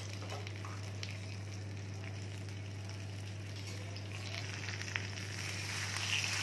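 A metal spatula scrapes and taps against a frying pan.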